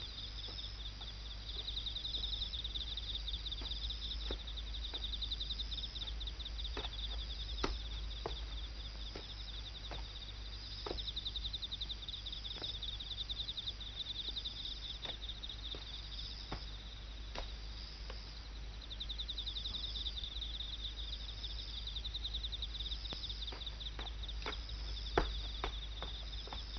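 A man's footsteps tap on hard ground.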